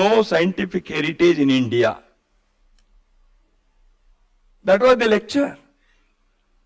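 An older man speaks with emphasis into a microphone, pausing between phrases.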